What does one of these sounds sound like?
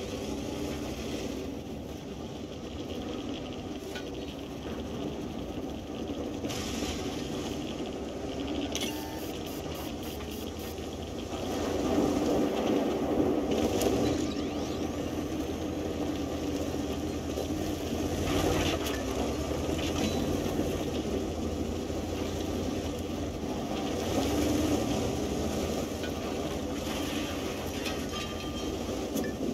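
A heavy tank engine rumbles steadily as the tank rolls along.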